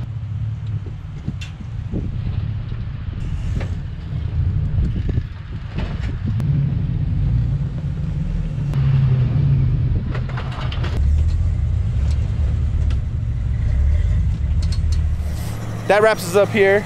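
Off-road vehicle engines rumble and growl as they crawl over rocks.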